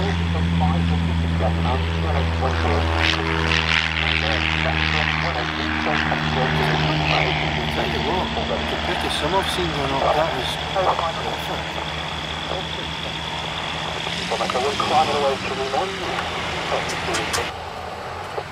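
A small propeller plane's engine drones loudly as it takes off and climbs away.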